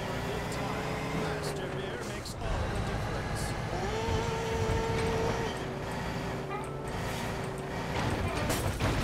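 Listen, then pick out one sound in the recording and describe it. A truck engine rumbles steadily as the truck drives along.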